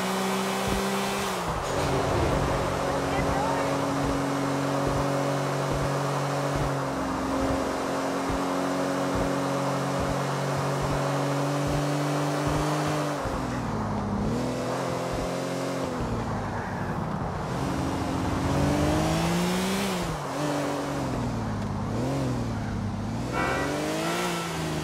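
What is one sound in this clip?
A sports car engine roars at speed, its pitch steady at first and then rising and falling as it shifts gears.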